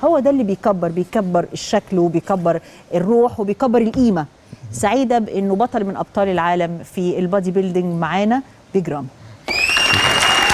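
A woman speaks with animation into a close microphone.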